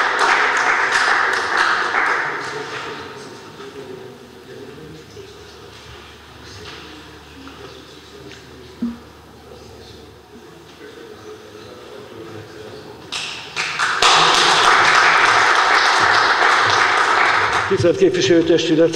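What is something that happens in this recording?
A crowd applauds in an echoing hall.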